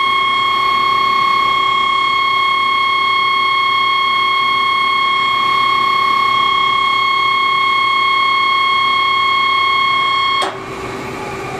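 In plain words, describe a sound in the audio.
A lathe spindle spins with a steady high-pitched whine.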